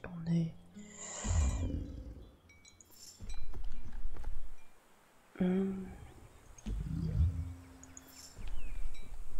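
Game sound effects whoosh and rumble.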